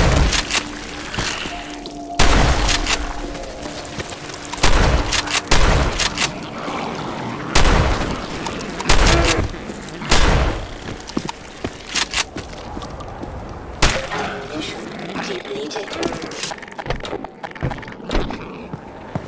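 A gun fires loud, echoing shots in bursts.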